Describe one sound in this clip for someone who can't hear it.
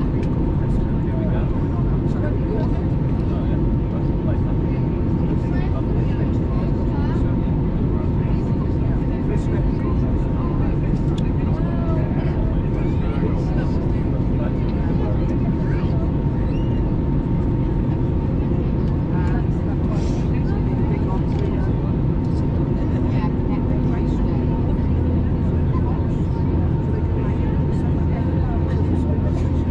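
Jet engines roar steadily in a low, loud drone, heard from inside an airliner cabin.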